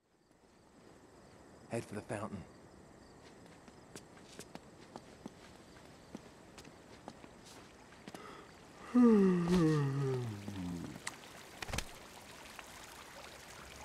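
Footsteps run quickly on a stone floor.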